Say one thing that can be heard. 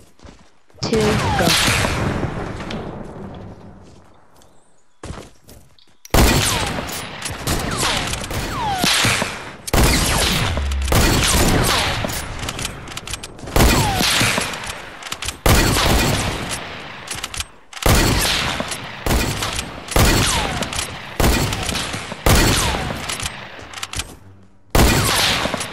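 Gunshots ring out repeatedly, each followed by a ringing echo.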